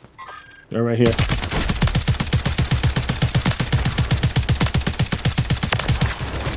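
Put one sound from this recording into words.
An automatic rifle fires in rapid, steady bursts.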